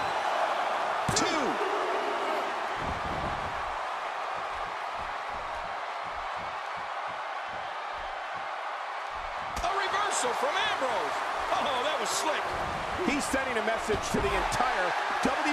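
Bodies thud hard onto a wrestling mat.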